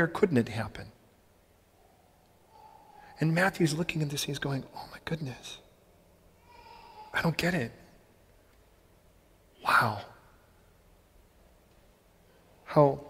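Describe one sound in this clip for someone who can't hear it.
A man speaks with pauses, heard through a microphone in a large echoing hall.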